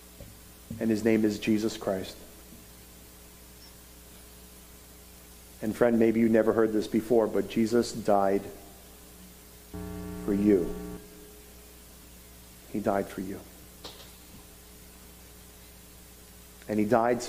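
A middle-aged man speaks slowly and calmly through a microphone, with long pauses.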